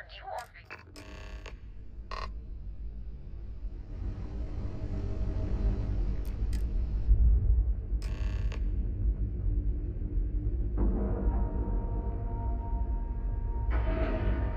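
A spaceship's engines rumble steadily, growing louder.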